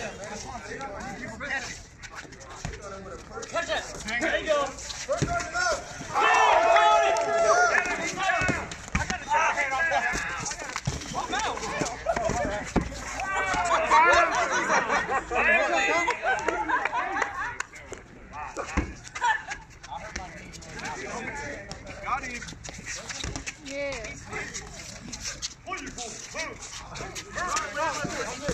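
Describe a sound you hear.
Young people shout and cheer outdoors during a ball game.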